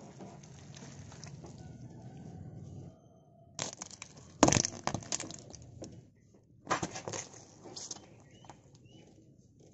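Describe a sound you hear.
A car tyre squashes soft fruit with wet crunching and squelching.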